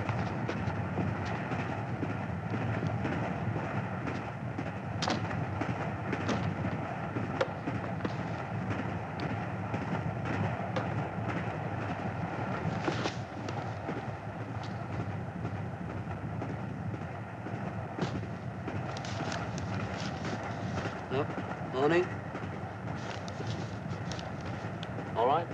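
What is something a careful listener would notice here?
A train rumbles along steadily.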